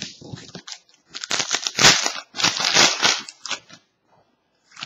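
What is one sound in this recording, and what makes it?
A foil trading card wrapper crinkles.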